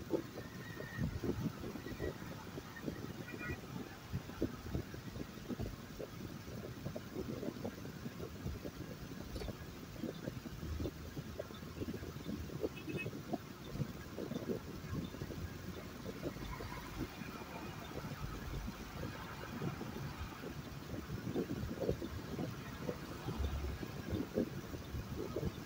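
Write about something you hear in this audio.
Tyres hum and rumble steadily on the road.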